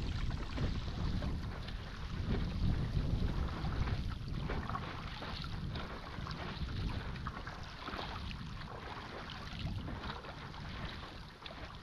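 Wind rumbles across the water.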